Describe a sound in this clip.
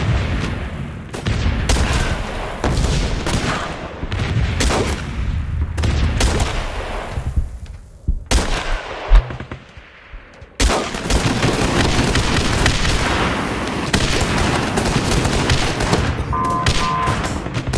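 Explosions boom and crackle in a video game.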